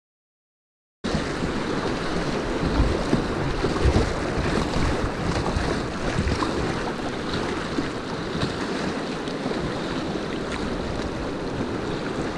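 Rapids rush and churn loudly around a kayak.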